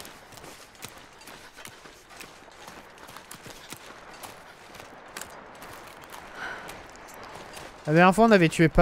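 Footsteps crunch through snow at an even pace.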